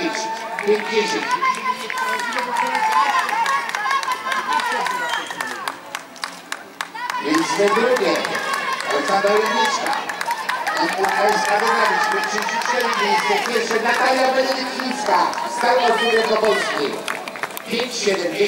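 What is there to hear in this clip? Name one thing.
A crowd of men and women cheers and shouts encouragement nearby.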